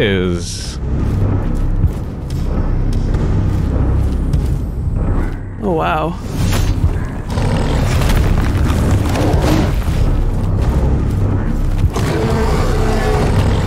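A huge creature growls and roars.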